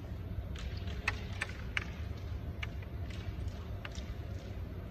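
Wooden carrom pieces click sharply against each other on a board.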